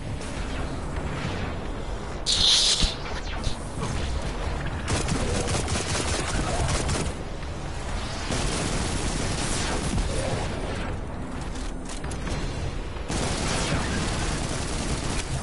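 Guns fire in rapid bursts with sharp electronic blasts.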